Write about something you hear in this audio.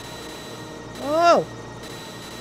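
A short electronic game sound swoops up and down in pitch.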